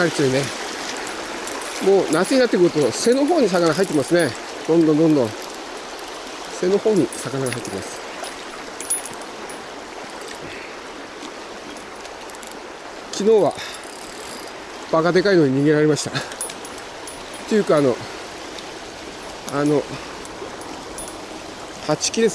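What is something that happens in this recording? A shallow river rushes steadily over stones outdoors.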